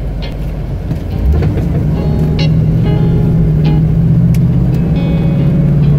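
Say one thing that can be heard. A truck drives along a road.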